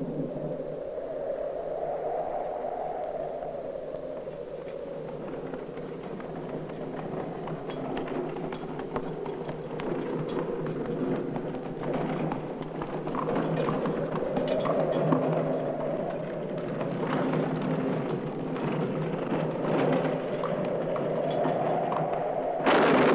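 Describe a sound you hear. A horse's hooves clop on soft ground.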